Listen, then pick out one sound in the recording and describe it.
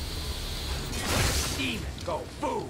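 A blade slashes through the air with a swift whoosh.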